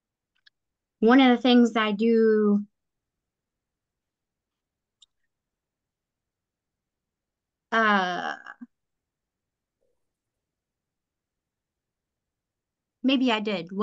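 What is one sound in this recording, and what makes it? A woman speaks in short bursts over an online call.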